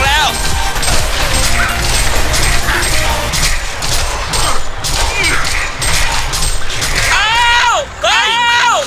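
Magic blasts whoosh and crackle in a busy fight.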